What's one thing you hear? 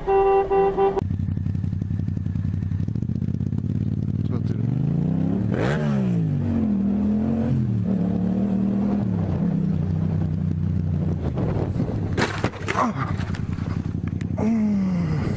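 A motorcycle engine rumbles and revs up and down.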